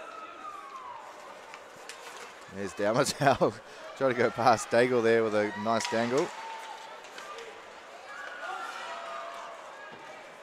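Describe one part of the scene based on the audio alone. Hockey sticks clack against a puck.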